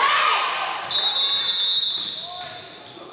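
A referee's whistle blows with a shrill, steady blast.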